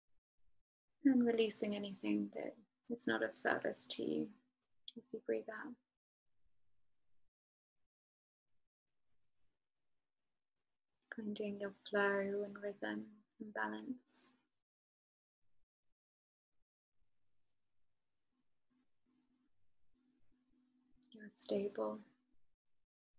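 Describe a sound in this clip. A young woman speaks calmly and closely into a microphone, with pauses.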